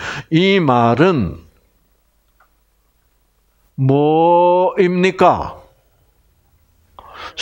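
An elderly man speaks with animation through a microphone, in loud drawn-out bursts with pauses between them.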